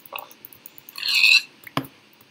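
A pig grunts nearby.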